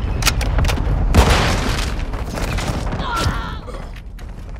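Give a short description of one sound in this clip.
Rapid gunfire cracks close by.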